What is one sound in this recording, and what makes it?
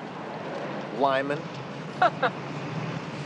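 A woman speaks playfully, close by.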